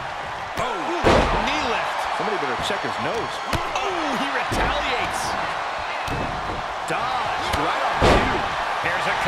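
Heavy bodies slam onto a wrestling ring with loud thuds.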